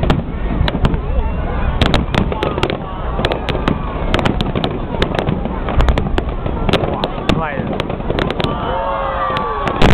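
Fireworks crackle as they burst.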